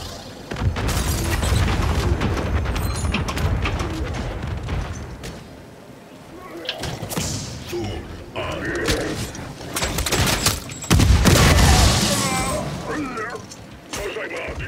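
Gunfire from a video game rattles in rapid bursts.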